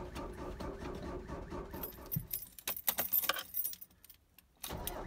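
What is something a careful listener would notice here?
A car engine's starter cranks repeatedly.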